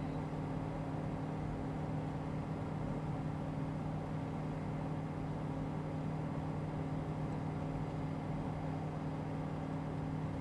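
A small plane's propeller engine drones steadily from inside the cockpit.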